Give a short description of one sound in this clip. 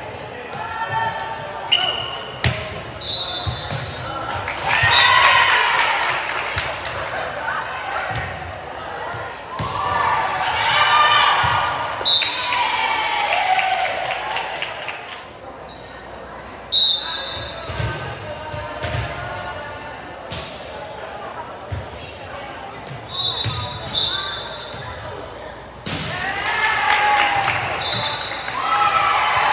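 Girls cheer and shout together in a large echoing gym.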